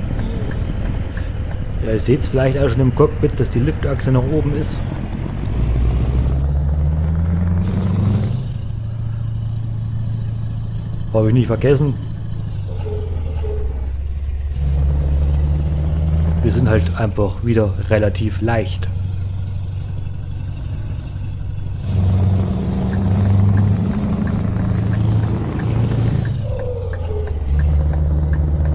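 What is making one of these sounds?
A truck engine hums steadily, rising in pitch as it speeds up and dropping at each gear change.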